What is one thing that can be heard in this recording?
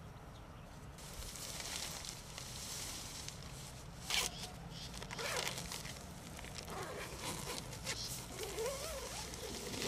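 Tent fabric rustles and crinkles close by.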